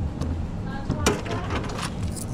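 A cash drawer slides open with a clunk.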